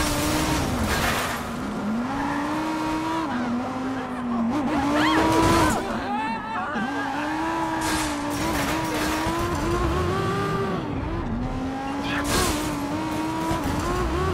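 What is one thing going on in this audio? A car crashes loudly into objects by the road.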